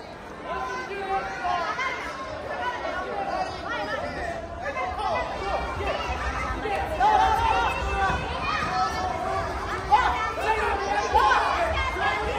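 A crowd of children and adults shouts and cheers in a large echoing hall.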